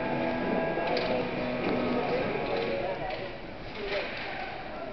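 Hockey sticks clack against a puck and against each other.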